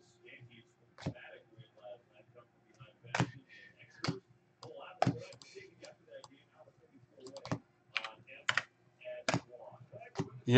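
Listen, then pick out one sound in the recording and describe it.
Trading cards are shuffled and flicked with sharp clicks.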